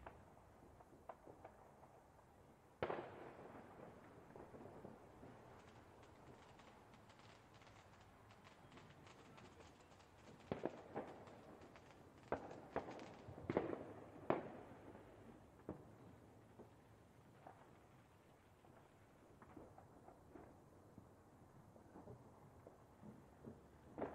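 Fireworks burst with loud booming bangs.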